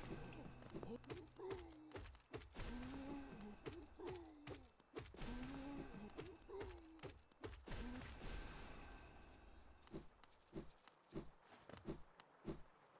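Sharp hits and slashes strike again and again.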